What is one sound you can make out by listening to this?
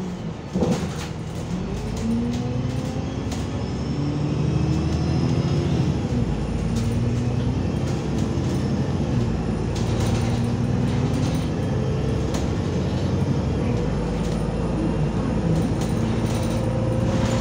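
The bus interior rattles and clatters over bumps.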